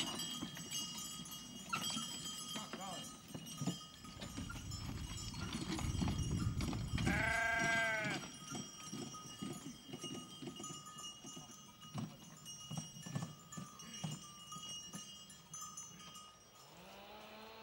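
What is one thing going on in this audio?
Horse hooves clop on soft earth.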